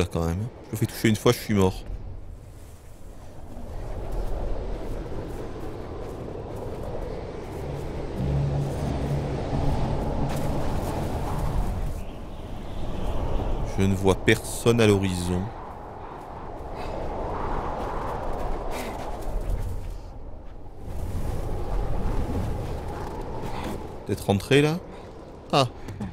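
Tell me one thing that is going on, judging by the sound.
Strong wind howls in gusts that rise and fall.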